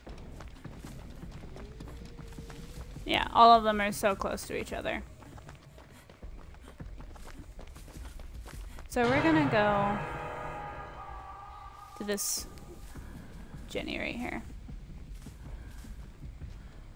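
Footsteps run quickly over leaves and grass.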